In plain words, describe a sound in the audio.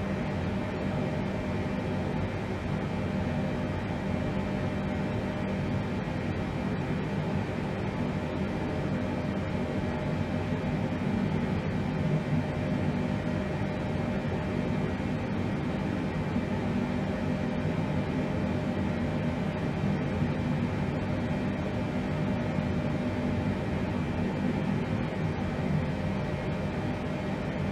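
A jet airliner's engines drone steadily, heard from inside the cockpit.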